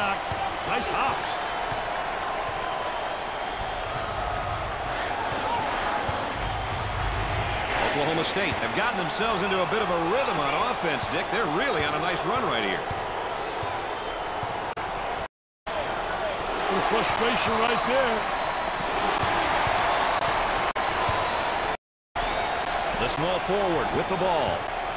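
A large crowd cheers and murmurs in an echoing arena.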